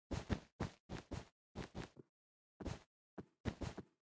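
Wool blocks are broken with soft, crunchy thumps in a video game.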